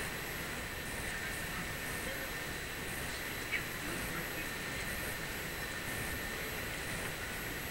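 A steady outdoor wind murmur fills the air.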